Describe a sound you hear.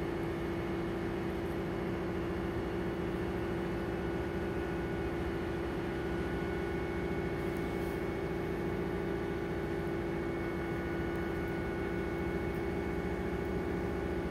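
A trolleybus motor hums steadily with a low rumble while driving.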